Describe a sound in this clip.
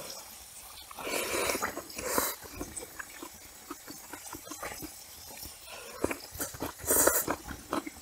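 A young woman slurps noodles loudly, close up.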